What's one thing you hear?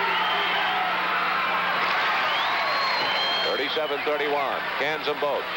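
A large crowd cheers and roars in an echoing hall.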